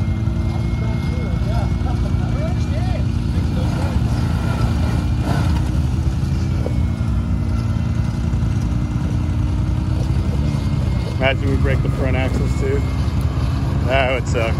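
An off-road vehicle's engine rumbles and strains steadily close by.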